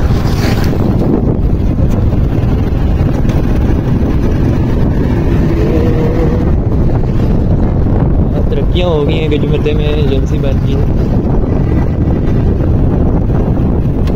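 A motorcycle engine hums while riding along a road.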